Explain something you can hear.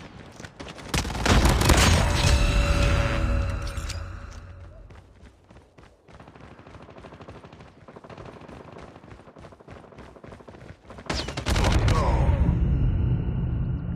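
Rapid gunshots boom loudly.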